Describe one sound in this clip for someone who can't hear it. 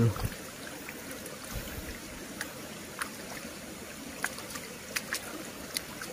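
Shallow water trickles and flows steadily.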